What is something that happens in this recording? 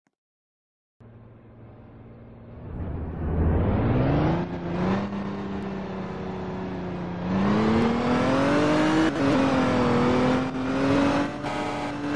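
A truck engine hums and revs up as the truck speeds along.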